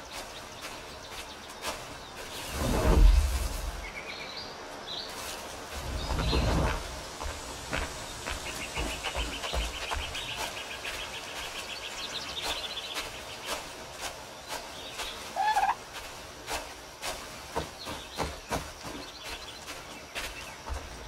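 Footsteps crunch through grass and dirt at a steady pace.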